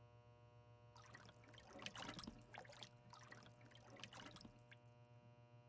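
Liquid sloshes and splashes in a shallow tray.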